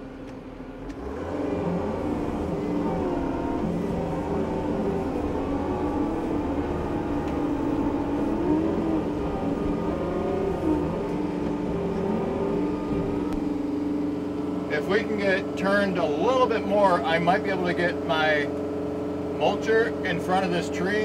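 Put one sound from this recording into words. A mower on a tractor's arm roars as it cuts through brush.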